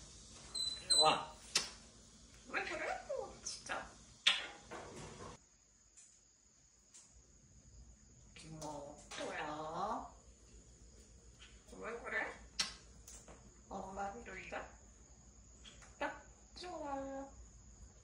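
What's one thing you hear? A parrot talks in short, chattering bursts of mimicked speech close by.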